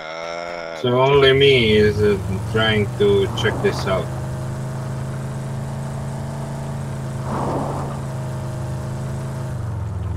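A vehicle engine hums steadily as it drives.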